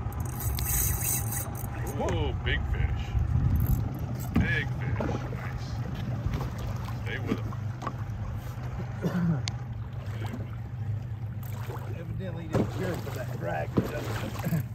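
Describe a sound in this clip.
A small electric boat motor hums steadily.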